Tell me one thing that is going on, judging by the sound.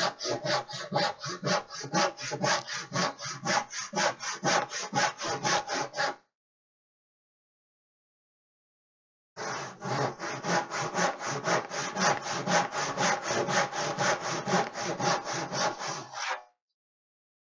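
A man sands a wooden board by hand with quick back-and-forth strokes.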